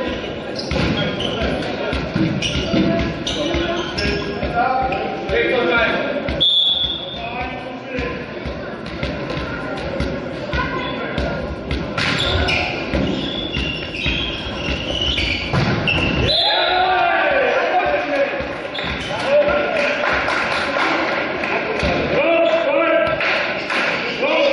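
Shoes squeak sharply on a hard court in a large echoing hall.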